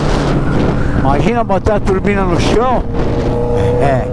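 A motorcycle engine revs up and down sharply.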